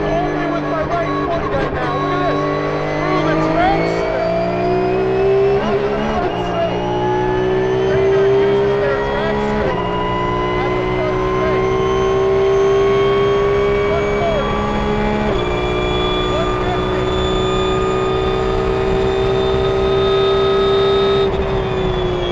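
A racing car's engine roars loudly from close by, climbing in pitch and dropping briefly at each gear change.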